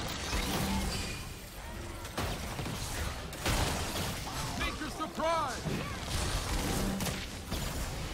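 Game character attacks clash and thud.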